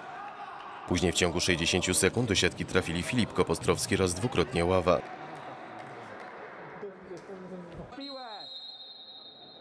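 Futsal players run and kick a ball in a large echoing hall.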